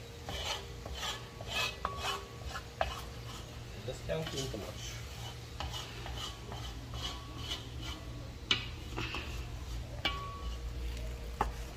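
A wooden spoon scrapes and stirs through thick food in a metal pot.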